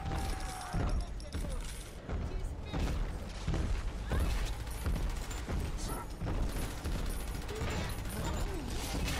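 A gun fires in loud repeated blasts.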